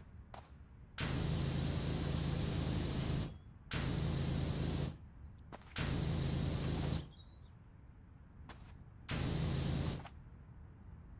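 A pressure washer hisses loudly in repeated bursts of spraying water.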